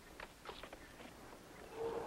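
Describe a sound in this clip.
Footsteps walk along a path.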